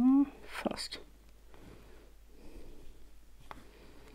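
Paper tabs are pulled and slide softly.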